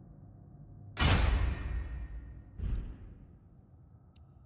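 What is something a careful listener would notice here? A game menu whooshes as it switches pages.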